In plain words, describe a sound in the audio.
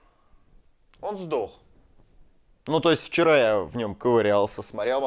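A young man speaks with animation close to a clip-on microphone.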